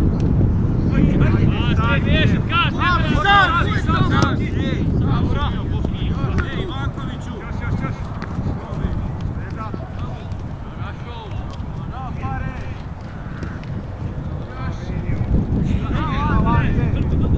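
Young men shout to each other in the distance.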